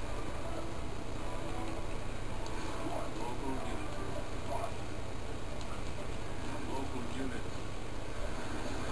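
Game sound effects play faintly through a small television loudspeaker.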